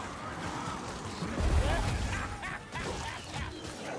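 Horned beasts roar as they charge.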